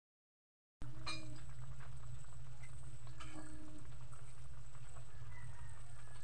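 Meat sizzles and bubbles in hot oil.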